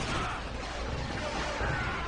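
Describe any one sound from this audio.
Laser blasters fire in quick bursts amid a rumbling battle.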